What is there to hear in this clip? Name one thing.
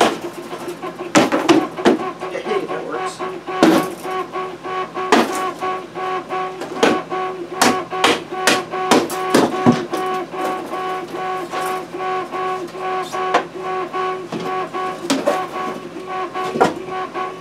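Wooden boards clatter and scrape as they are moved.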